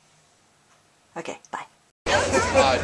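A young woman speaks briefly and cheerfully close by.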